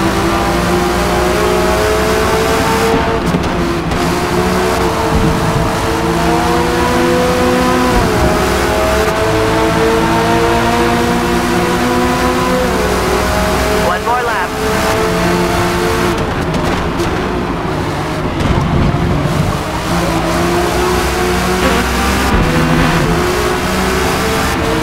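A race car engine roars loudly, revving up and dropping as gears shift.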